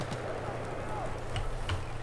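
An explosion booms and roars nearby.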